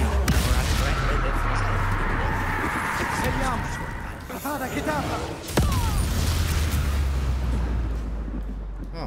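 Magic spell blasts crackle and roar loudly.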